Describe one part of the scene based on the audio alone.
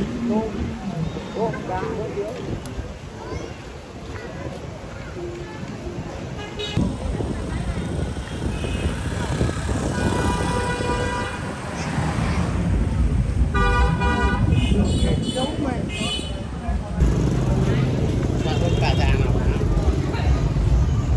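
Street traffic rumbles in the background.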